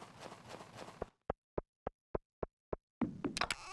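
Soft footsteps tap in an even rhythm.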